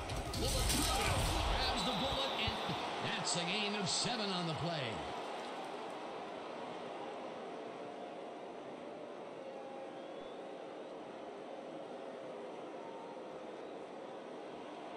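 A large crowd cheers loudly, then settles into a steady murmur.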